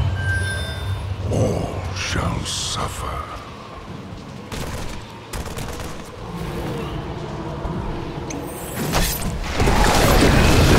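Weapons clash and fire in a fast battle.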